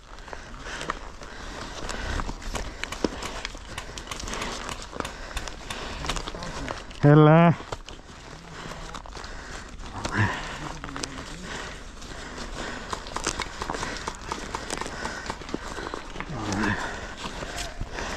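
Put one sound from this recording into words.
A rifle is handled, with its gear rustling and clicking close by.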